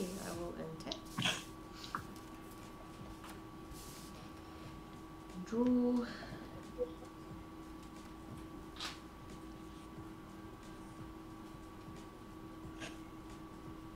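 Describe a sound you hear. Playing cards slide and tap softly on a table.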